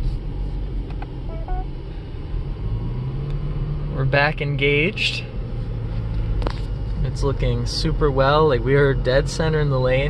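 A car drives along a road with a steady low rumble heard from inside.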